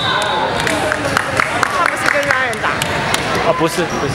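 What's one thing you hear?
A basketball bounces on the hard floor.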